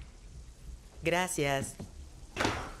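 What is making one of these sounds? An elderly woman speaks with surprise, close by.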